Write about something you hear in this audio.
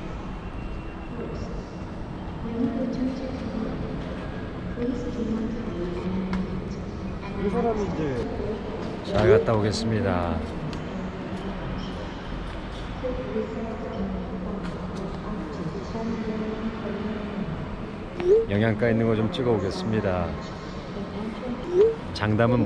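A man talks calmly and close by, in a large echoing hall.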